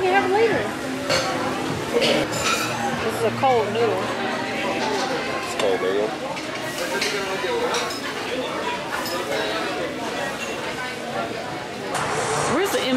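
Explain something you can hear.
Cutlery clinks on plates.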